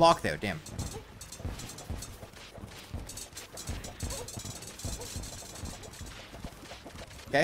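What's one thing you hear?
Low video game hits thud in a steady, quick rhythm.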